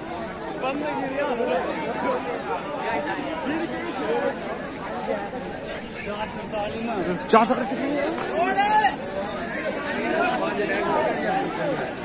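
A crowd of young men chatters and calls out nearby, outdoors.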